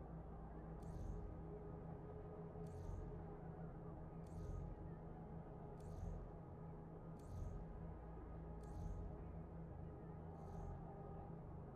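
A soft menu click sounds every second or two as comic covers flip.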